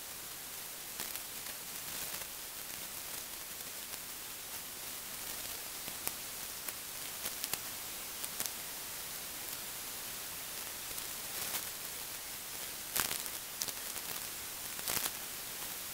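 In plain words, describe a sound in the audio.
Footsteps shuffle on soft, leafy ground close by.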